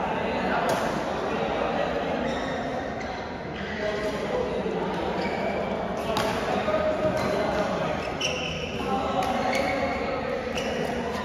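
Shuttlecocks are struck with rackets, with sharp pops echoing in a large hall.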